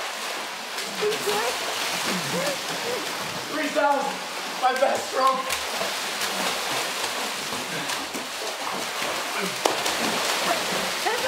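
Water splashes and churns loudly as swimmers thrash.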